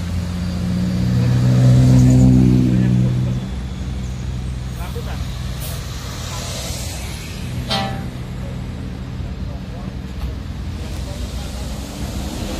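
A large bus engine idles and rumbles close by.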